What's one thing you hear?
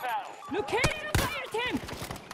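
A crossbow fires a bolt with a sharp snap.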